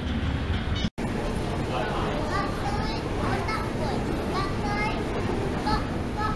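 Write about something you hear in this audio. An escalator rumbles steadily in a large echoing tunnel.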